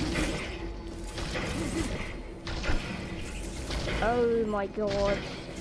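Energy weapons fire and crackle in quick bursts.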